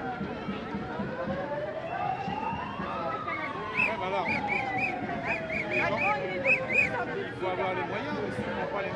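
Many footsteps shuffle on pavement.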